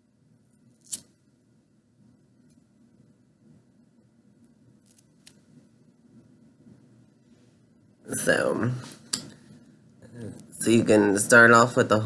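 Scissors snip through a doll's hair.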